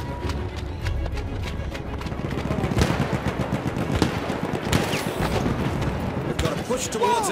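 Gunfire cracks and pops throughout a battle.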